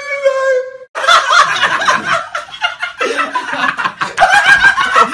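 A young man shouts and laughs wildly.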